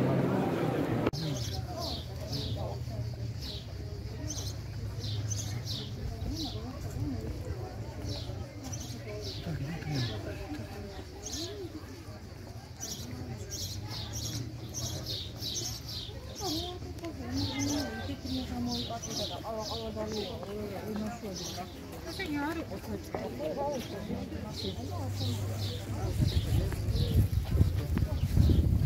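Men and women chat nearby in a crowd.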